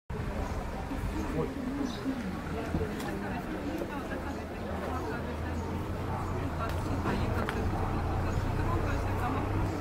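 Several women talk in the distance outdoors.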